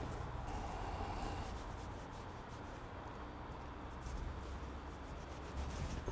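A knife scrapes softly against rope.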